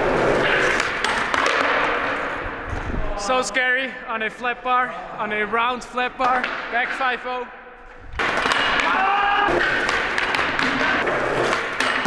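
Skateboard wheels roll and rumble across a concrete floor.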